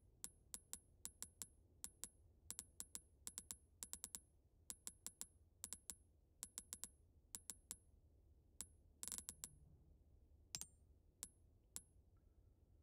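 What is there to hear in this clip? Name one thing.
Short menu ticks click in quick succession, then slow and stop.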